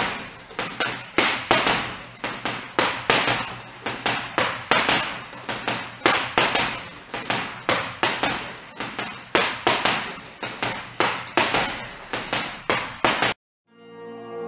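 Punches thud rapidly against a heavy punching bag.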